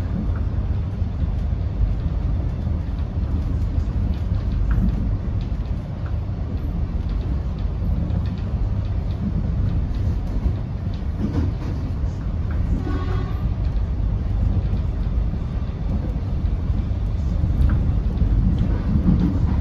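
A bus engine rumbles low and steady from inside.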